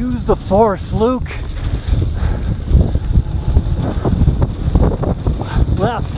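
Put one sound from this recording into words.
Bicycle tyres roll and crunch over a bumpy dirt trail.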